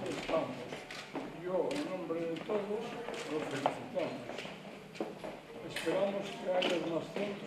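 An elderly man reads out calmly.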